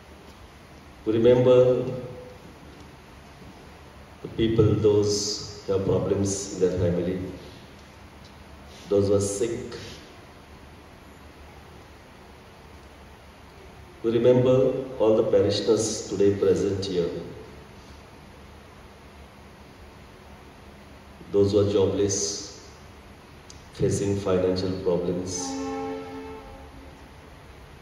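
A man speaks slowly and solemnly into a microphone, heard through a loudspeaker with a slight echo.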